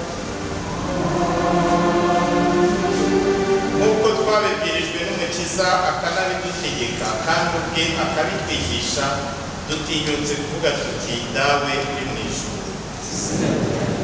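A man chants in a steady, sung voice through a microphone in a reverberant room.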